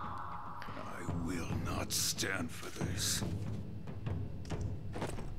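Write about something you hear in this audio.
A man speaks in a deep, angry voice.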